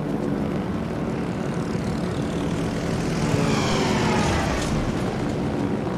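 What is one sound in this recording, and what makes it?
Anti-aircraft guns fire in rapid bursts.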